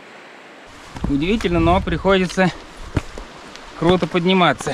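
An elderly man talks calmly and close by.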